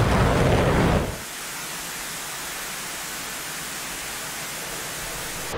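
A missile's rocket motor roars loudly, then settles into a steady hiss.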